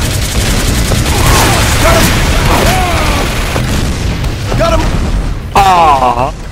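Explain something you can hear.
A heavy machine gun fires in a rapid, continuous rattle.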